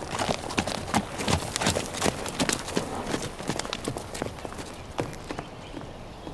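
A horse's hooves clop on dirt ground.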